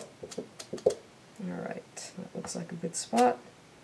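A wooden stamp presses down onto paper with a soft thud.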